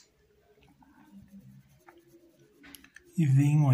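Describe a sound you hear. A paintbrush strokes softly across cloth.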